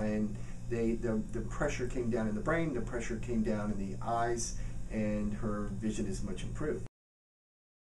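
A middle-aged man talks calmly and with animation close to a microphone.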